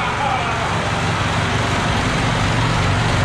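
A tractor's diesel engine revs up and runs faster.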